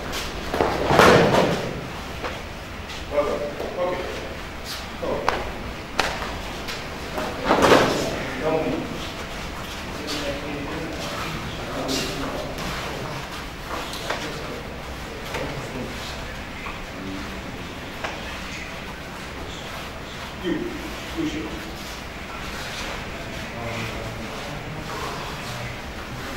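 Men talk quietly nearby in an echoing room.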